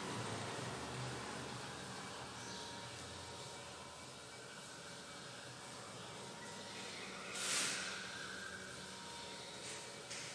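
A cloth rubs and wipes across a chalkboard.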